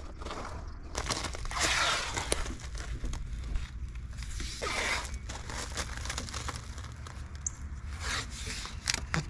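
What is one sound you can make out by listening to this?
Wind rumbles low outdoors.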